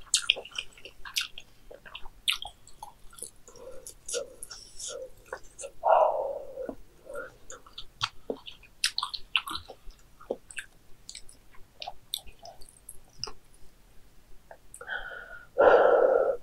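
A young woman chews and slurps noodles loudly close to a microphone.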